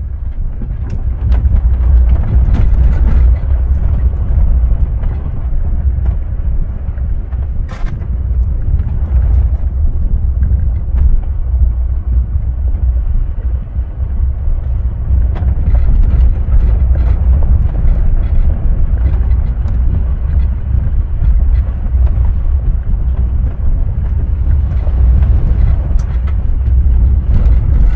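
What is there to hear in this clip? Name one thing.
Tyres crunch and bump over a rough dirt track.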